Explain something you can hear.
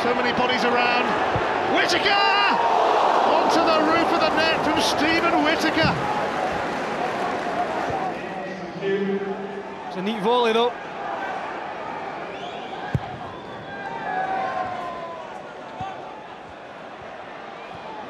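A large football crowd roars in a stadium, then dies down to a murmur.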